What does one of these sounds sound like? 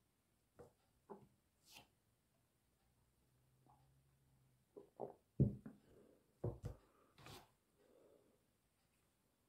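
A man sips and gulps a drink up close.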